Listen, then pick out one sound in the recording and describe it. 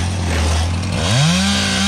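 A chainsaw engine revs up sharply.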